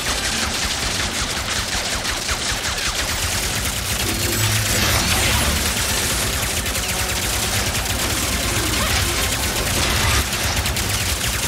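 Explosions boom and rumble deeply.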